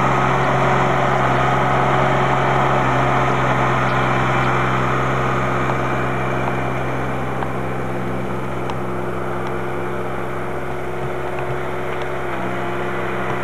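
A snow plow blade scrapes and pushes through deep snow.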